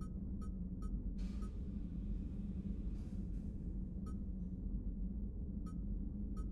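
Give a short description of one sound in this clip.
Short electronic blips sound as a menu selection steps down a list.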